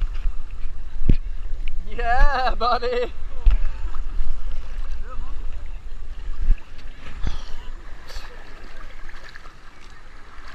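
Water splashes as a man wades through shallow waves.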